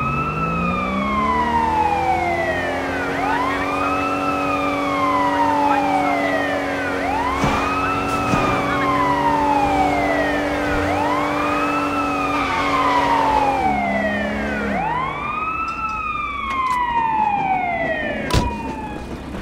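A police siren wails up and down in long, repeating sweeps.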